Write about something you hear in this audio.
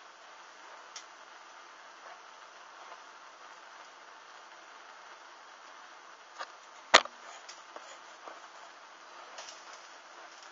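Burning bits pop and snap now and then.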